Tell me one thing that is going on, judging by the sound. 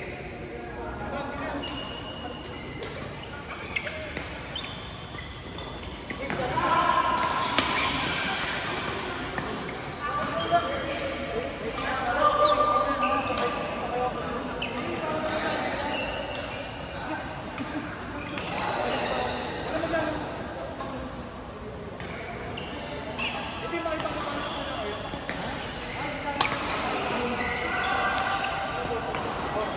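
Players call out and chatter in a large echoing hall.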